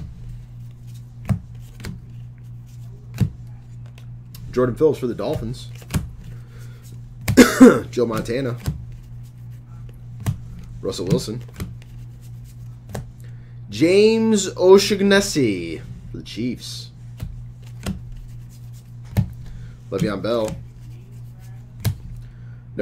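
Trading cards rustle and tap as they are shuffled by hand.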